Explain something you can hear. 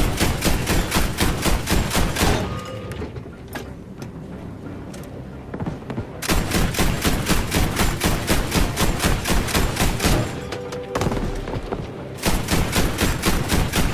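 An anti-aircraft gun fires rapid bursts of shots.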